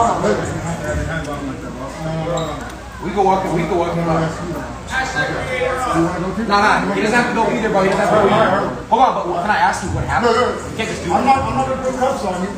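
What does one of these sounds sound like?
A young man argues excitedly, close by.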